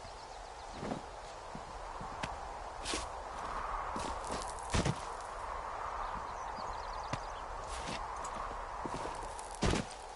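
Shoes thud and scrape on rock during a climb.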